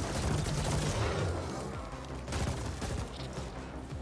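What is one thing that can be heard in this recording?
Guns fire and blasts boom in a video game.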